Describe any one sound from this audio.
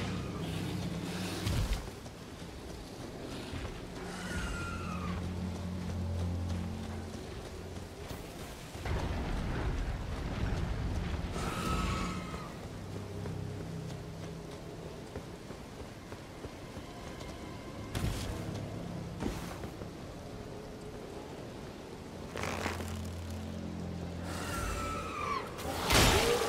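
Footsteps crunch through grass and over rock.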